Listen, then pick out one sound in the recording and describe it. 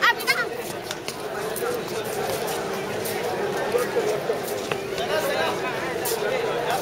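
A large crowd of men and women chatters all around, outdoors.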